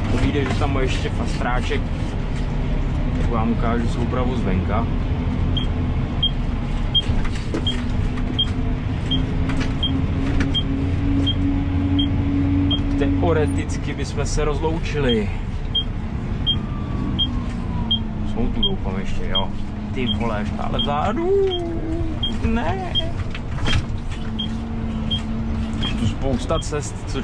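A tractor engine drones steadily, heard from inside the cab.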